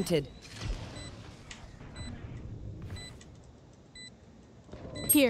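An electronic beep repeats at an even pace.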